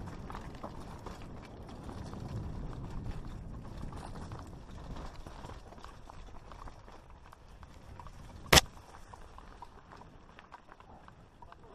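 Mountain bike tyres crunch over loose rock and dirt.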